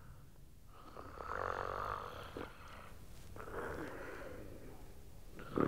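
A man groans weakly close by.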